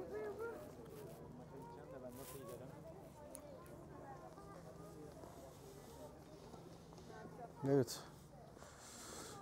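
Footsteps walk over paving stones.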